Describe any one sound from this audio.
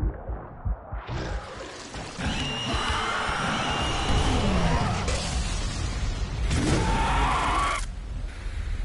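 Loud blasts and magical bursts crash in quick succession.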